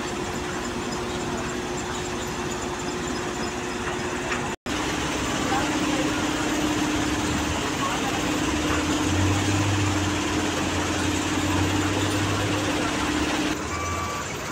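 Heavy screening machinery rumbles and clatters steadily.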